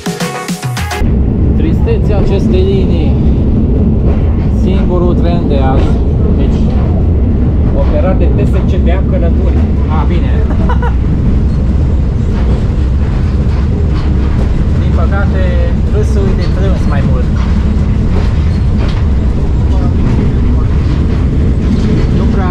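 A train rumbles and rattles steadily along the rails.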